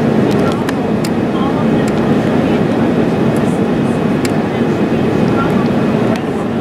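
A jet engine roars steadily from inside a plane cabin.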